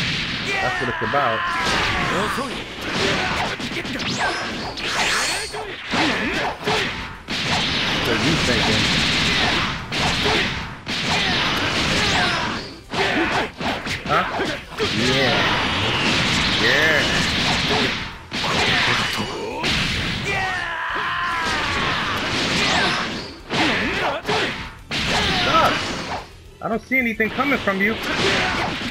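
Energy blasts and punches crash and boom in a fast fight.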